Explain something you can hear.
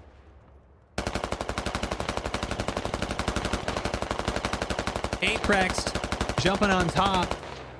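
Rapid gunfire rattles on without pause.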